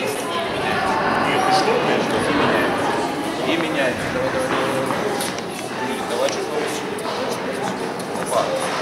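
Many children and adults chatter in a large echoing hall.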